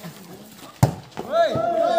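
A ball is struck hard with a hand.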